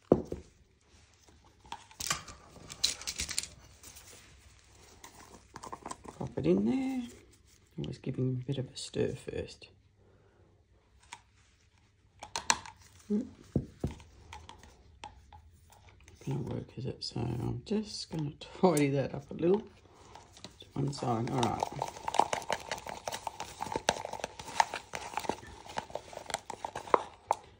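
A wooden stick scrapes and taps inside a plastic cup.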